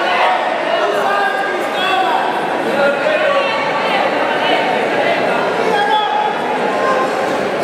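A crowd of spectators shouts and yells.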